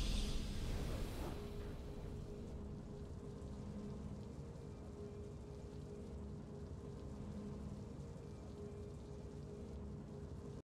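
A game's triumphant victory music plays.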